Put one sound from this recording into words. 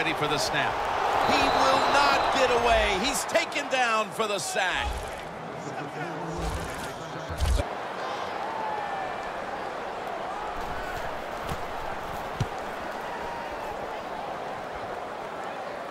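A large stadium crowd cheers and roars, loudest at first and then settling to a steady rumble.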